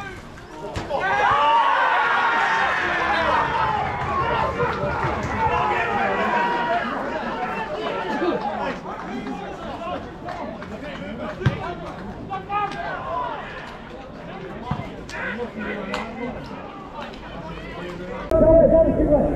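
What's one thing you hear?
Men shout on a football pitch outdoors.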